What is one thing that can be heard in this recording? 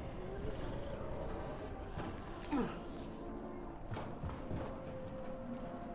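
Footsteps thud across a metal roof.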